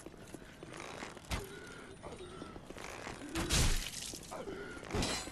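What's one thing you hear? Armoured footsteps clank on a stone path.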